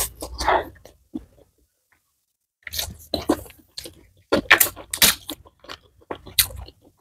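A woman chews food loudly and wetly close to a microphone.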